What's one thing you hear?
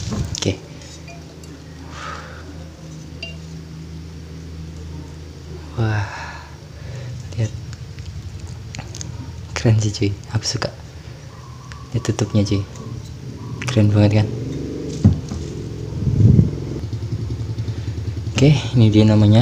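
A glass bottle clinks and knocks as it is handled.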